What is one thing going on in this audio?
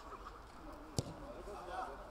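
A football is kicked with a sharp thud.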